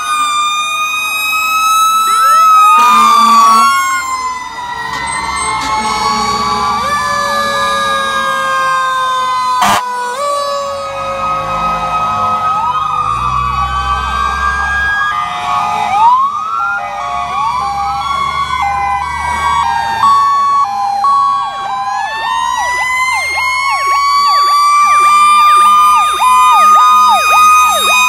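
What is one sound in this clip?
Several sirens wail loudly and overlapping, rising and falling close by.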